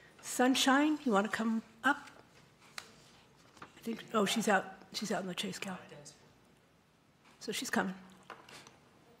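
An older woman speaks calmly into a microphone.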